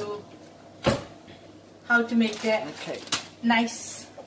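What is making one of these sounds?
A metal pot clanks against a stove.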